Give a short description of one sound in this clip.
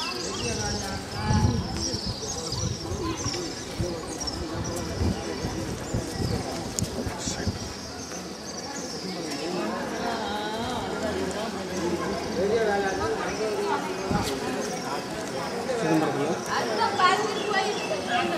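Several men talk nearby in an open space outdoors.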